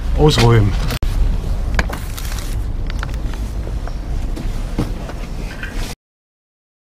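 Furniture and boxes knock and thump as they are loaded into a van.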